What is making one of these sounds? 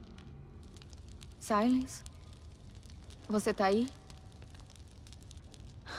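A fire crackles.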